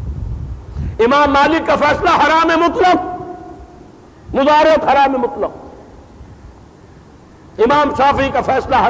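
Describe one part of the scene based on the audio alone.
An elderly man speaks forcefully through a microphone, in bursts with pauses.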